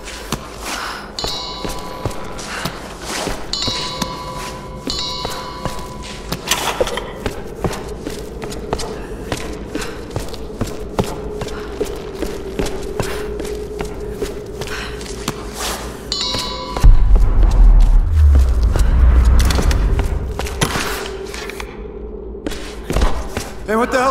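Footsteps run quickly over stone and gravel.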